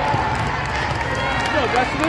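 A volleyball bounces on the floor.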